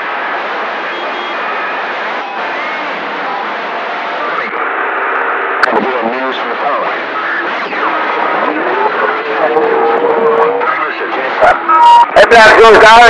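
A radio hisses with static and faint whining tones.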